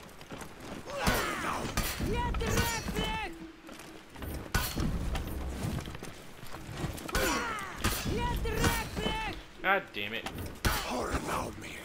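Metal swords clash and ring in a fight.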